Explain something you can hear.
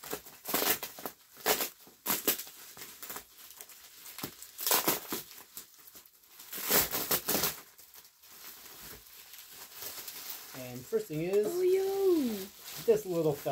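Plastic wrap crinkles and rustles in bursts as it is handled.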